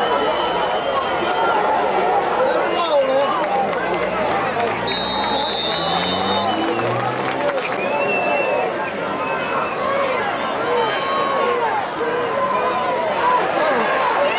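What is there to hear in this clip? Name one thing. A large crowd chatters and cheers outdoors.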